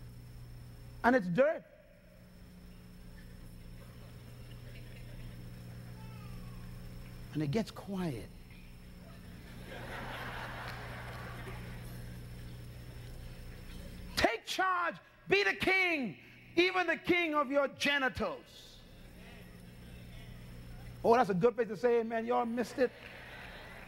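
A man preaches with animation into a microphone, in short bursts between pauses.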